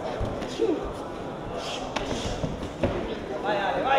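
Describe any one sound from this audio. Gloved punches thud sharply.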